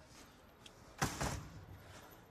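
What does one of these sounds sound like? A door bangs shut.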